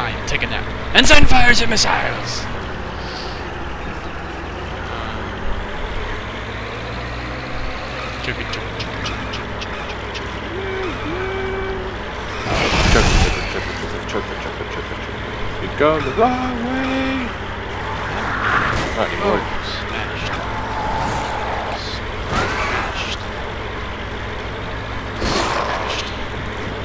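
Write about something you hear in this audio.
Loud thuds and crashes ring out as the vehicle hits things.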